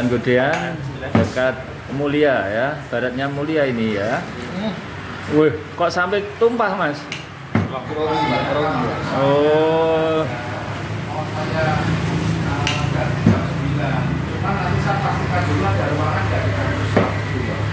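Metal cups clink against each other.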